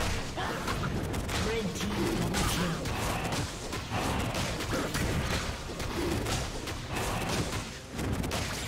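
Magic blasts and hits crackle and burst rapidly in a game battle.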